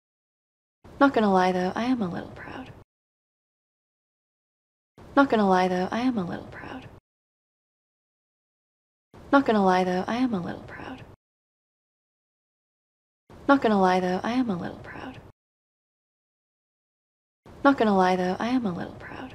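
A young woman speaks calmly and warmly at close range, the same short line coming again and again with silences between.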